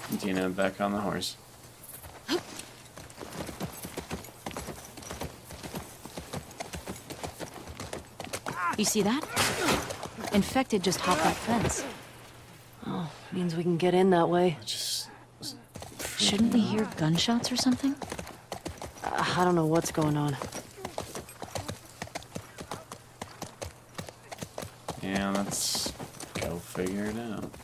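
A horse's hooves clop at a walk.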